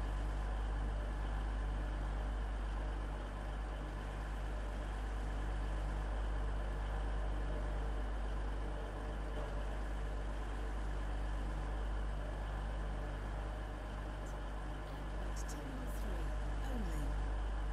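A train's motor hums steadily as the train rolls along.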